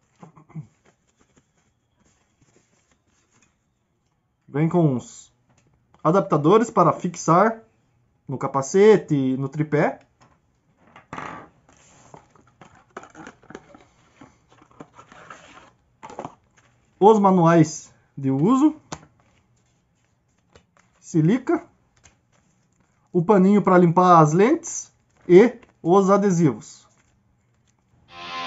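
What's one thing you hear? Paper and cardboard rustle as they are handled.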